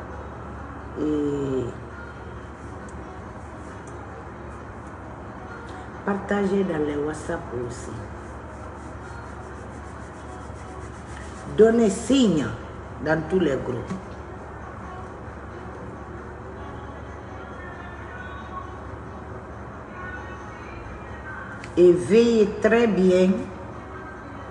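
A middle-aged woman speaks close to a microphone, in short bursts with long pauses.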